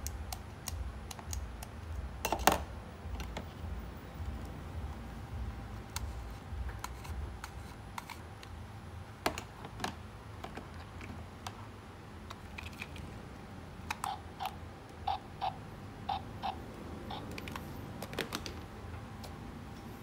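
Plastic toy pieces click and clatter as they are handled.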